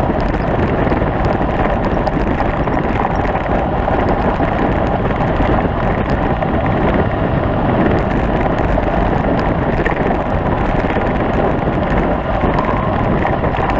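Tyres crunch and rattle over a rough gravel track.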